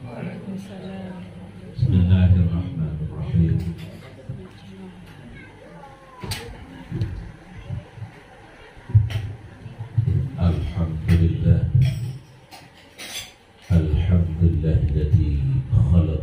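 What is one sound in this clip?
An elderly man sings through a microphone over a loudspeaker.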